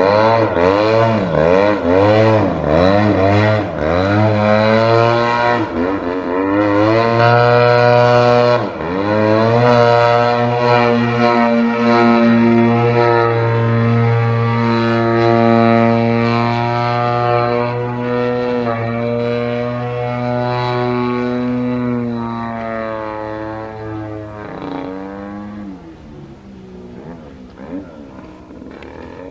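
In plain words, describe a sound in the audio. A small model plane engine buzzes loudly overhead, its pitch rising and falling as it swoops and slowly fading toward the end.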